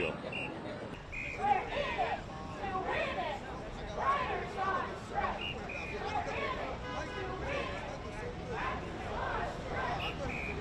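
A crowd of people chants while marching on a busy street.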